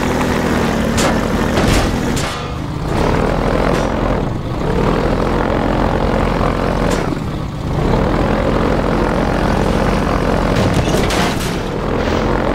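A boat hull thuds and scrapes over rough ground.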